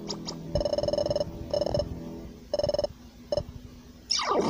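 Short electronic beeps chatter in quick bursts.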